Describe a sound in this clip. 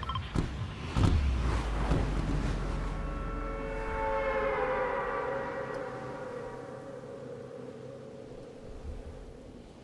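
Wind rushes loudly during a fall through the air, then fades.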